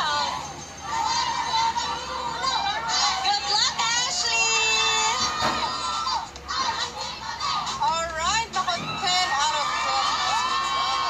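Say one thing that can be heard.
A crowd of young women cheers and screams loudly.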